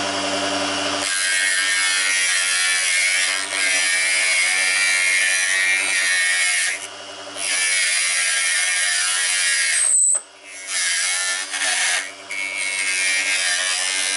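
A chisel scrapes and shaves spinning wood.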